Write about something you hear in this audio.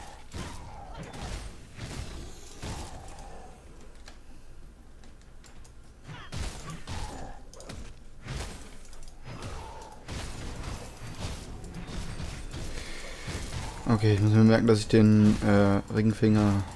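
Magic blasts crackle and burst in a fight.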